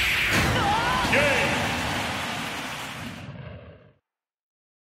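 A powerful magical blast roars with a rushing whoosh and slowly fades away.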